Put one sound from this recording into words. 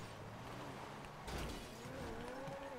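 Tyres skid and scrape over loose dirt.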